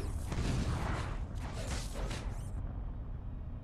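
A large explosion roars and rumbles.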